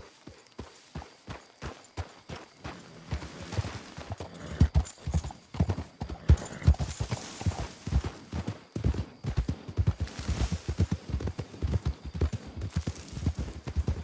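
Hooves thud steadily on dirt as a horse gallops.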